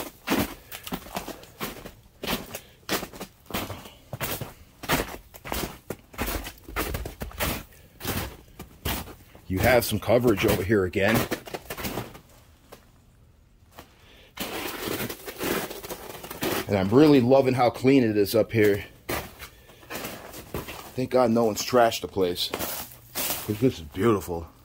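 Footsteps crunch on snow and rocky ground at a steady walking pace.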